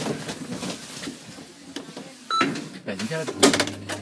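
A metal elevator button clicks as a finger presses it.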